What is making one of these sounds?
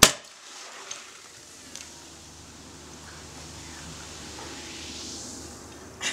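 Liquid splashes and trickles into a metal bowl.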